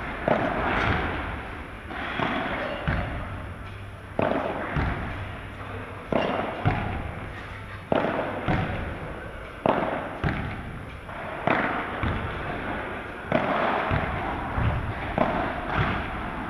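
Padel rackets hit a ball back and forth with sharp pops.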